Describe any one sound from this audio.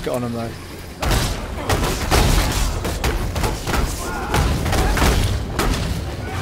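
Magic blasts and fiery explosions crash in quick bursts.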